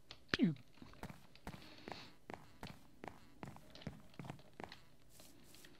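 Footsteps tap steadily on wooden boards and grass.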